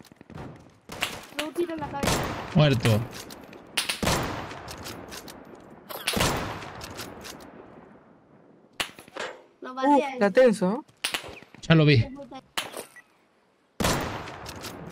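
Rifle shots crack and echo outdoors.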